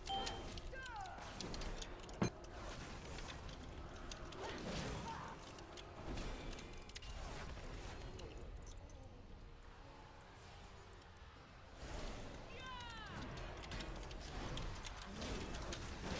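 Magic spells crackle and blast in a game battle.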